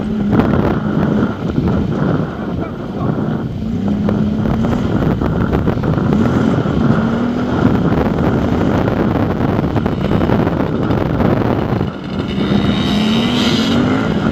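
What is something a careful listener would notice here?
A motorcycle engine revs and drones up close throughout.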